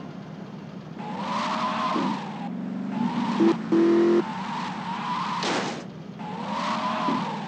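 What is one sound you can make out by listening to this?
Car tyres screech on pavement.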